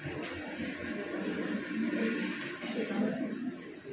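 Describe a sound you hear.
A woman speaks softly through a microphone.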